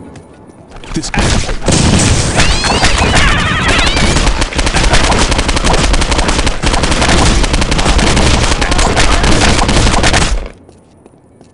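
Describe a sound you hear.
A rifle fires rapid, loud bursts of automatic gunfire.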